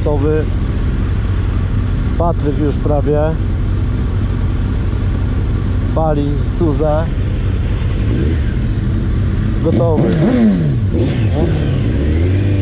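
Motorcycle engines rev up sharply in short bursts.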